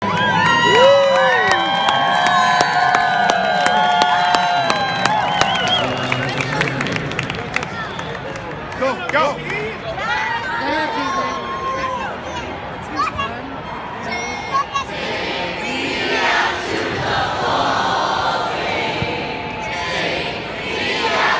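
A crowd of children and adults sings together loudly outdoors.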